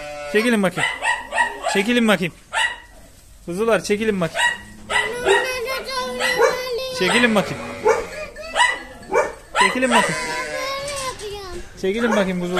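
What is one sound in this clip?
Many sheep bleat loudly and repeatedly, close by, in a chorus.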